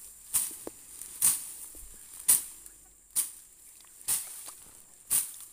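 A blade slashes through plant stems in regular, evenly spaced strokes.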